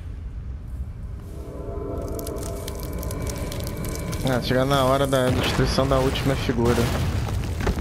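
Electric bolts crackle and snap.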